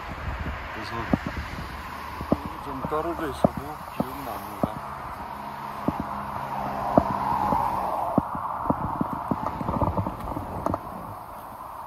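Footsteps tap steadily on a paved path.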